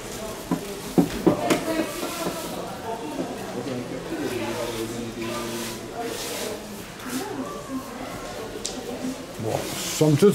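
Stones clack against glass and each other as they are set down.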